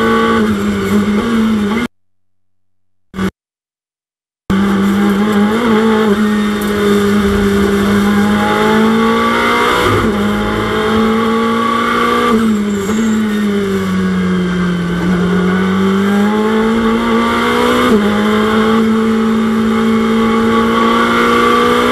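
A racing car engine roars steadily, its pitch dipping and rising with gear changes.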